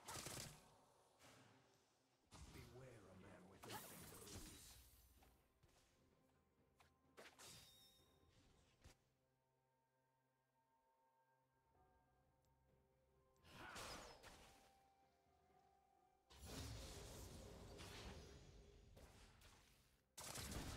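Game spells whoosh and crackle in bursts during a battle.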